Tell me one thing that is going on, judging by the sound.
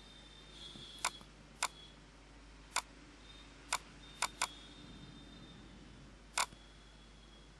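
A computer mouse clicks several times, sharp and close.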